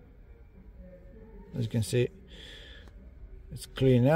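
A finger taps lightly on a touchscreen.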